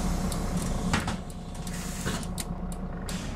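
Air hisses as bus doors open.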